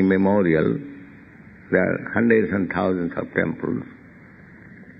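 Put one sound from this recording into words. An elderly man speaks calmly in a muffled, old-sounding recording.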